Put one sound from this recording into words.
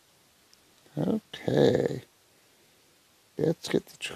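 A man speaks briefly and calmly close to a microphone.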